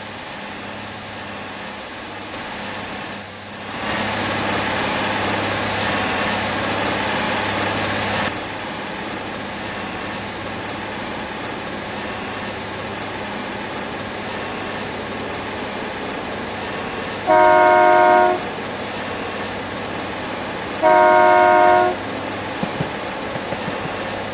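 A diesel multiple-unit train rumbles along the track.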